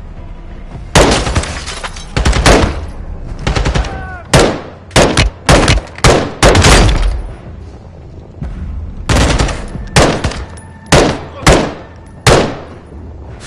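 Rifle shots fire in quick bursts, loud and sharp.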